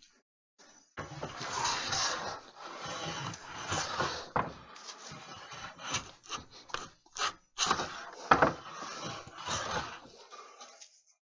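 A hand plane scrapes along wood in short strokes.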